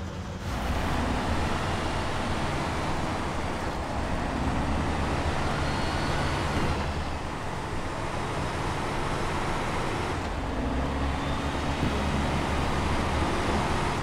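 Tyres crunch through snow and slush.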